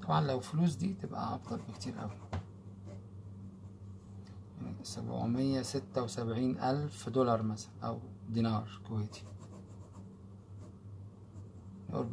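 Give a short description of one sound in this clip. A pen scratches briefly on paper.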